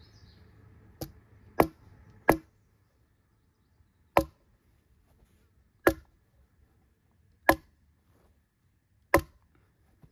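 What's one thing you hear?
A staple gun snaps sharply, again and again.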